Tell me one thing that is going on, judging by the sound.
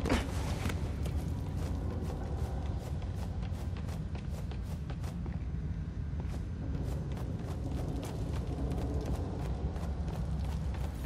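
Footsteps patter quickly across a wooden floor.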